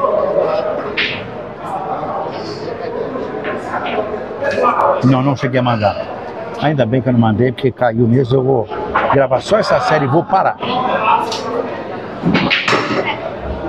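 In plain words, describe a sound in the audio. A pool cue strikes a ball with a sharp tap.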